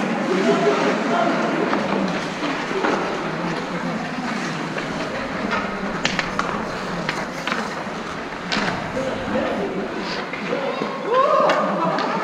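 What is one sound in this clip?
Young men talk and call out nearby.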